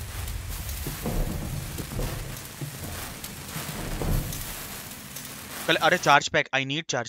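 A flare hisses as it burns.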